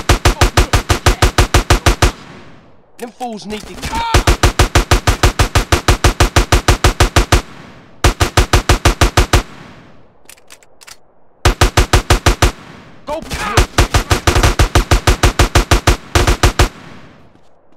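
A rapid-fire gun fires in long bursts.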